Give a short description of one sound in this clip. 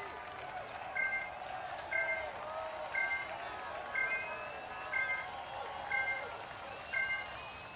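Short electronic beeps sound once per second, counting down.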